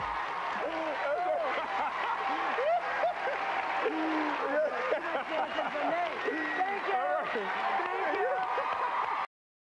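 A crowd claps continuously.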